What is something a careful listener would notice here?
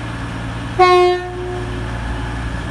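A train horn sounds a short loud blast.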